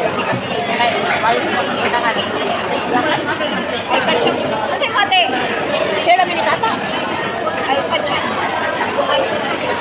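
A woman talks nearby in a casual way.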